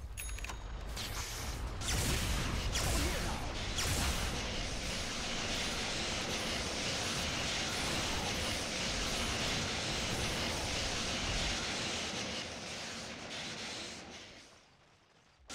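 Game spells and weapons crackle and clash in a busy battle.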